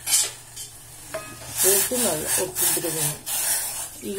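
A wooden spatula stirs grains in a steel pot of boiling water.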